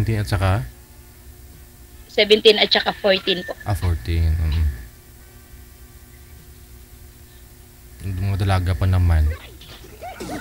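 A middle-aged woman talks with animation over an online call.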